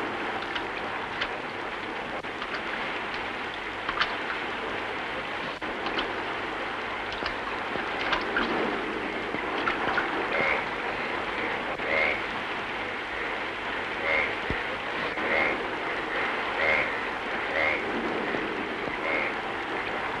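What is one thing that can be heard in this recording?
Steady rain patters on open water outdoors.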